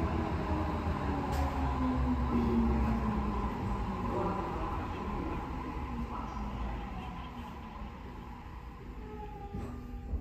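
Train wheels rumble on the rails.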